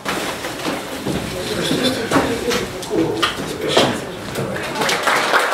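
A woman speaks to an audience.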